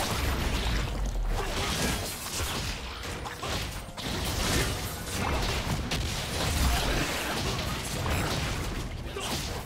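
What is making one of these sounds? Magic blasts crackle and boom in quick succession during a fight.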